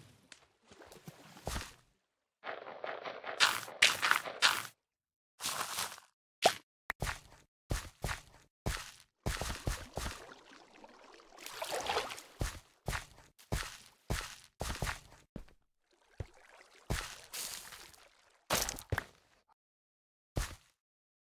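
Soft thuds and crunches of blocks being placed and broken sound in quick bursts.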